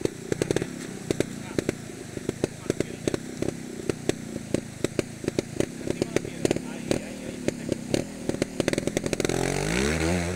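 A trials motorcycle engine idles with sharp popping bursts.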